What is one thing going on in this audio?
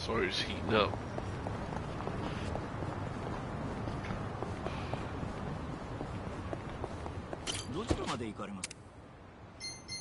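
Traffic hums steadily along a busy street.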